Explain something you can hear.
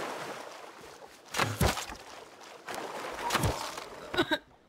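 A rock thuds against a body.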